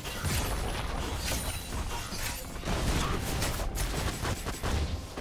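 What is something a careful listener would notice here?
Magic spells whoosh and crackle while fighters clash in a video game battle.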